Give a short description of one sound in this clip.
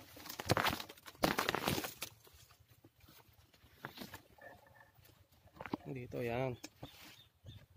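Leafy plants rustle and brush close by as someone pushes through them.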